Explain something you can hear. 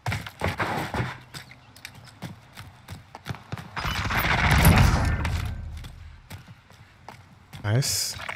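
Footsteps tap on a hard surface.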